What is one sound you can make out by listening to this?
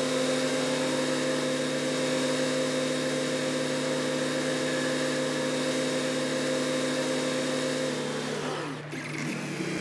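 A tractor engine idles steadily, then winds down.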